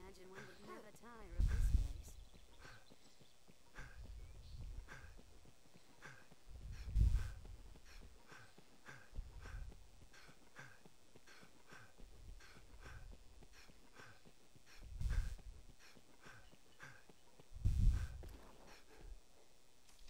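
Footsteps tap steadily on stone paving.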